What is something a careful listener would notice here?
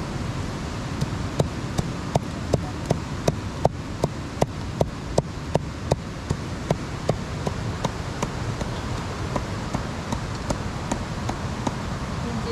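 A heavy knife chops meat on a wooden block in quick, steady blows.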